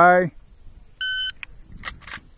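A shot timer beeps once.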